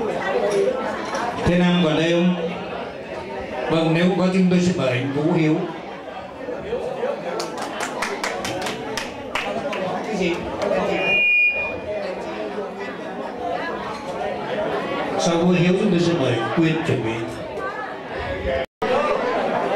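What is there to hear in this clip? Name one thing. A man sings into a microphone over a loudspeaker.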